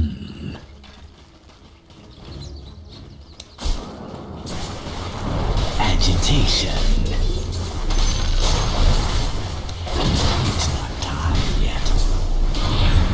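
Spells and weapons clash with bursts of magical whooshes and impacts.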